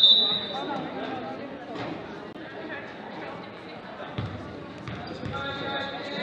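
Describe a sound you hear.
A crowd chatters in a large echoing gym.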